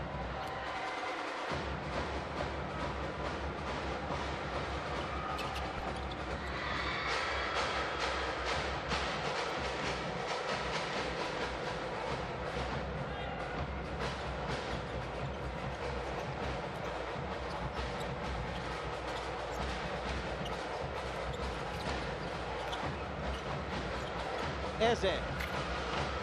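A crowd cheers and murmurs throughout a large echoing arena.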